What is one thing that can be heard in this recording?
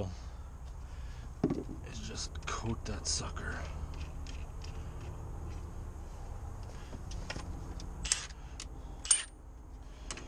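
Metal tools clink and clatter.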